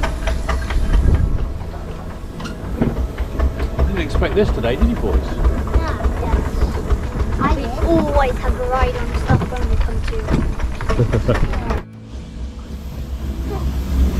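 A small steam engine chuffs and rumbles as it rolls along.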